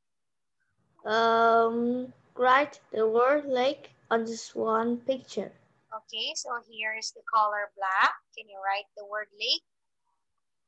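A woman speaks clearly and with animation over an online call.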